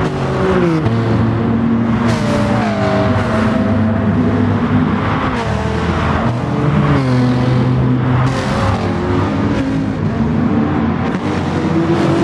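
Racing car engines roar loudly, their pitch rising and dropping through gear changes.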